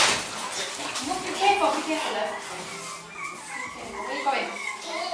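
Small puppies whine and yelp close by.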